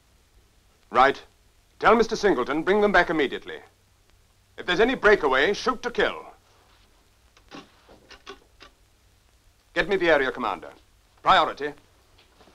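A middle-aged man speaks firmly into a telephone.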